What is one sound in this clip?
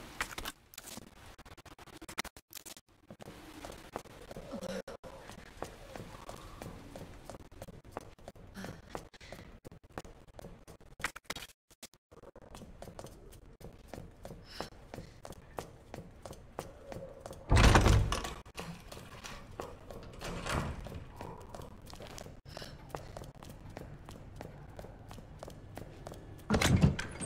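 Footsteps fall on a tiled floor.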